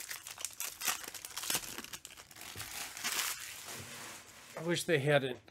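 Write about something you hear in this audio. Foil card packs crinkle and rustle in someone's hands.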